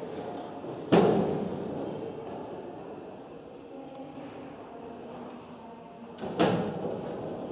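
A metal frame clanks loudly as a person climbs on it.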